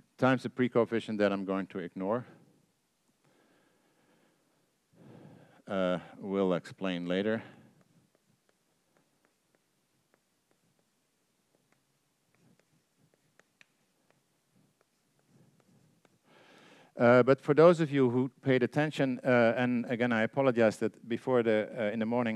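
An older man lectures calmly through a microphone, pausing between phrases.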